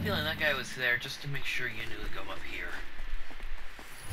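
Footsteps crunch quickly over loose stone.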